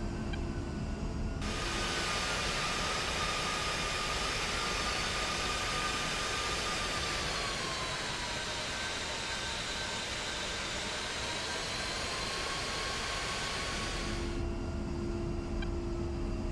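A jet engine hums low and muffled from inside a cockpit.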